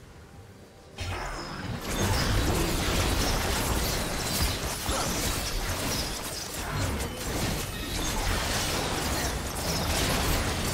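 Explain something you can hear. Game characters strike a monster with rapid hits.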